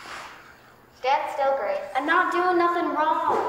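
A young girl speaks with feeling in a large, echoing room.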